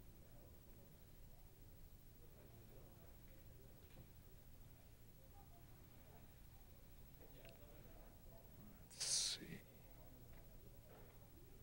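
An older man speaks quietly and slowly into a microphone, as if reading out.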